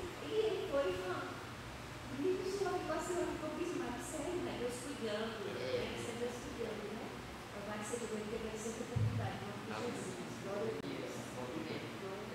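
An elderly woman speaks calmly into a microphone, heard through loudspeakers in an echoing room.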